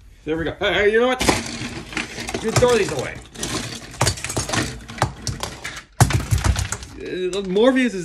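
Small plastic toys clatter and rattle.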